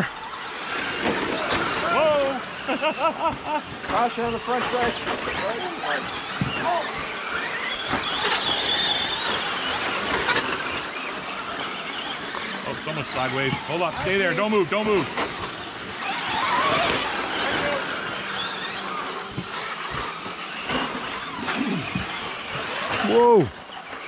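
Men talk casually nearby outdoors.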